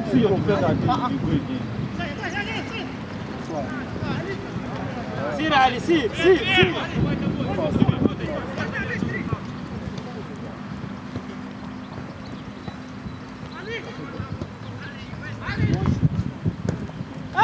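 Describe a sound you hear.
Young players shout to one another across an open outdoor field.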